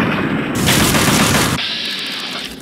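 An automatic rifle fires a burst.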